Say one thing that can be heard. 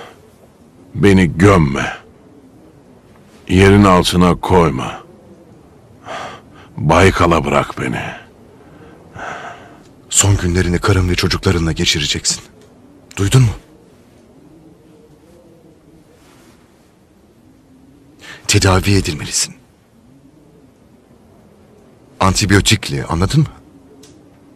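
A man speaks in a low, strained voice, close by.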